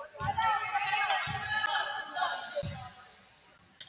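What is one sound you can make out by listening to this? Young women's voices call out together in an echoing gym.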